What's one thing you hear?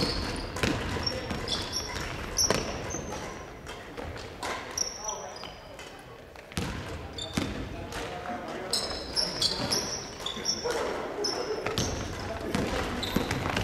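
Young men shout and call out to one another in a large echoing hall.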